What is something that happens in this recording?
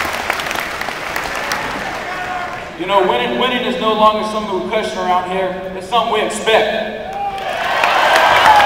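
A large crowd cheers and applauds in a vast echoing hall.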